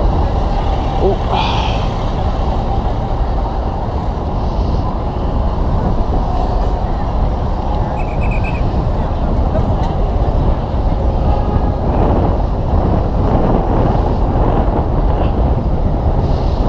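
Traffic hums steadily along a busy street.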